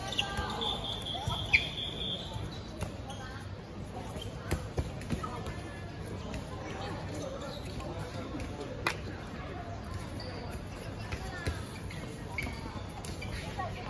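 Children and teenagers chatter and call out across an outdoor court.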